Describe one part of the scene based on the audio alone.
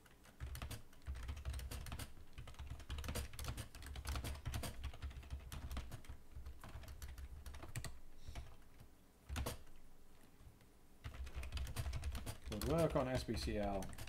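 Keys clatter quickly on a computer keyboard.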